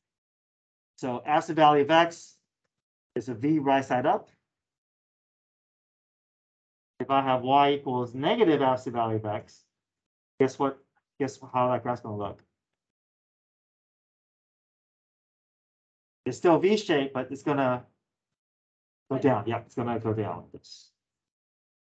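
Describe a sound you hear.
A man speaks calmly in bursts, explaining, heard through a microphone.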